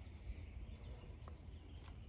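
A brush scrapes and taps inside a glass jar.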